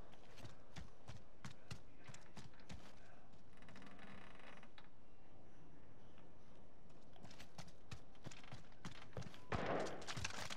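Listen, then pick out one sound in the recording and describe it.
Quick footsteps thud on dirt and wooden boards.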